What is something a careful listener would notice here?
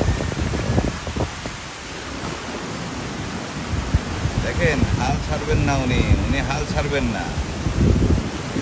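Water splashes as a woman wades through a flood.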